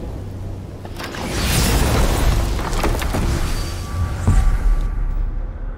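A magical gateway opens with a loud rushing whoosh.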